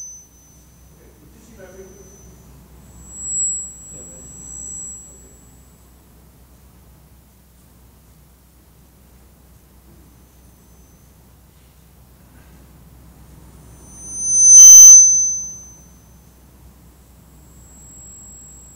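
Fingers press buttons and turn knobs on a mixing desk.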